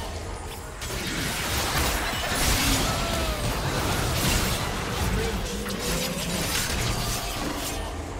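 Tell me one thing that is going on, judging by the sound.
Magic spells crackle and burst in a hectic fight.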